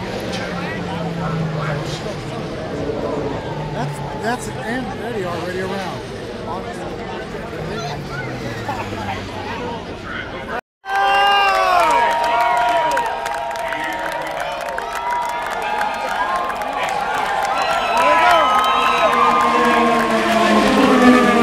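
IndyCar race cars scream past at full speed, their engine pitch dropping as they go by.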